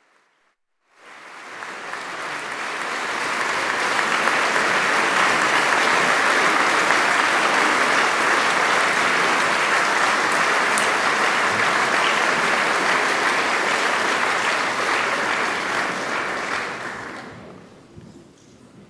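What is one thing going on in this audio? A large audience applauds in an echoing hall, swelling and then fading away.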